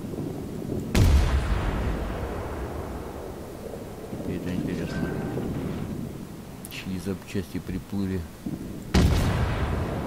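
Heavy ship guns fire with deep booms that roll away.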